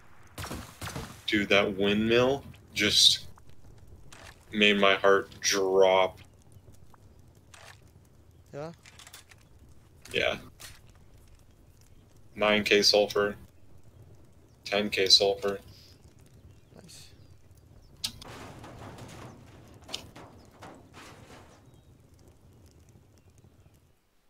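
Flames crackle and burn.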